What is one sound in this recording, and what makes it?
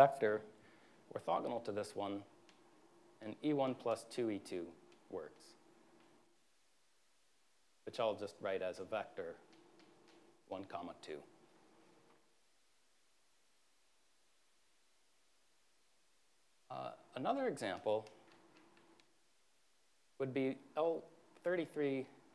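A man lectures calmly through a microphone, speaking in short bursts with pauses.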